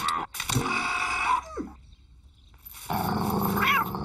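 A dog growls menacingly.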